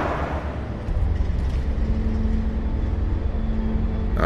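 A metal gate rattles as it is pushed.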